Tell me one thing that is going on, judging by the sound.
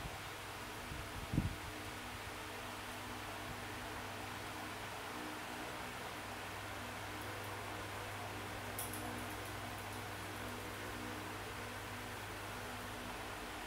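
Electronic game music plays steadily from a tablet speaker.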